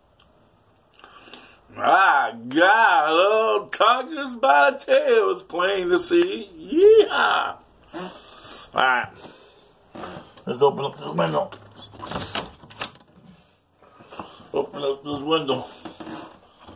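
An older man speaks with animation close to the microphone.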